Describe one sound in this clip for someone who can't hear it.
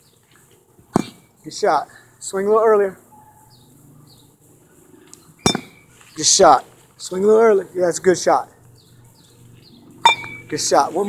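A bat sharply strikes a ball several times.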